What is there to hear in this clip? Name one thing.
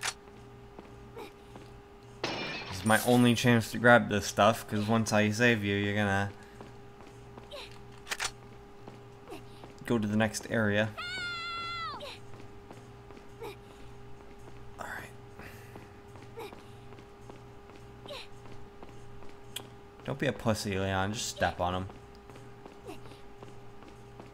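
Footsteps echo on a stone floor in a large hall.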